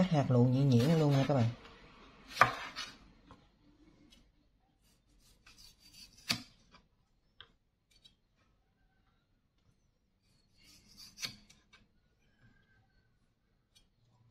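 A knife slices through tomatoes onto a wooden cutting board.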